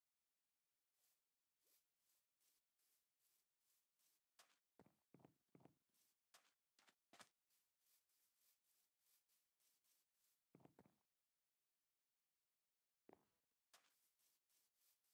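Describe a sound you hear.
Footsteps thud on wooden planks and soft ground.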